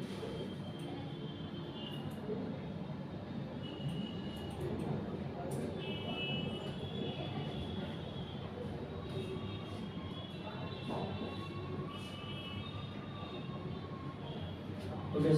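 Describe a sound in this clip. A marker squeaks as it writes on a whiteboard.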